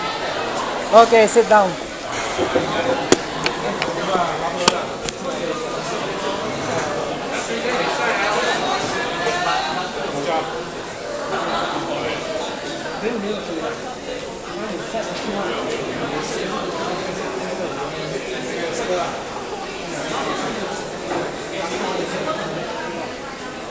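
Men talk nearby in an echoing indoor space.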